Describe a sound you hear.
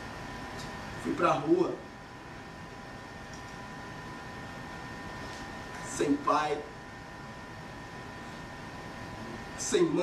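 A second man answers briefly, heard from a distance.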